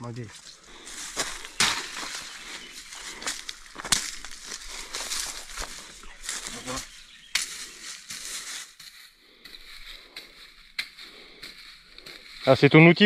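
A hoe scrapes and chops into dry soil.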